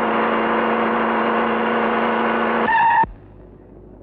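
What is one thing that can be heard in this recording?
An old jeep engine runs as the jeep pulls in.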